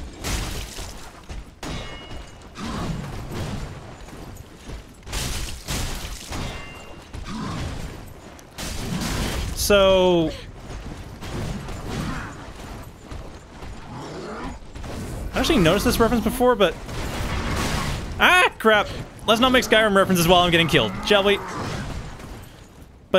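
Heavy metal weapons clash and thud.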